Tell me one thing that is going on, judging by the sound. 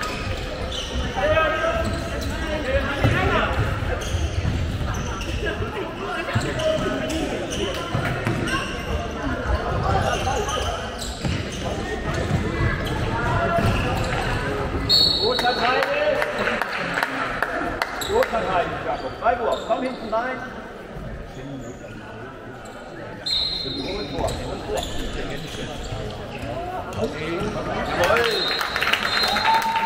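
Sports shoes squeak on a wooden floor in a large echoing hall.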